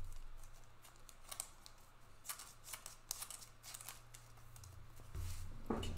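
Plastic card wrappers crinkle and rustle in someone's hands.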